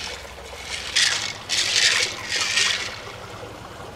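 Small pearls clatter and rattle as a hand stirs them in a shell.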